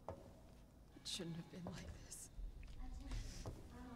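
A woman speaks quietly and sorrowfully.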